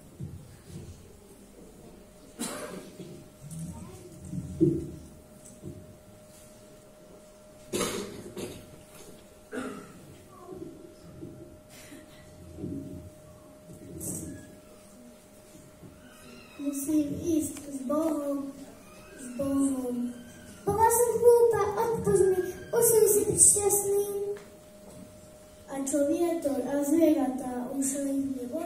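Children speak on a stage through microphones, echoing in a large hall.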